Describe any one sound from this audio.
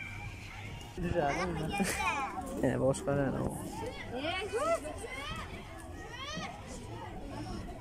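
Several children chatter and call out loudly nearby.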